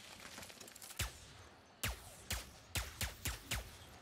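A blaster fires in quick bursts of shots.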